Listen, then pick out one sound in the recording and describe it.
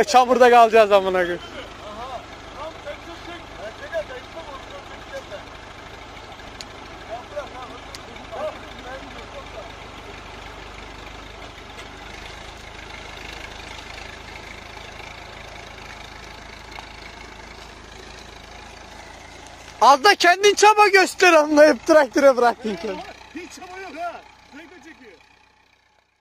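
A car engine idles.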